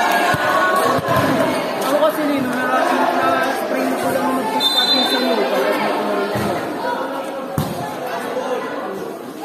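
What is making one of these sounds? A crowd of young women chatters and calls out loudly nearby.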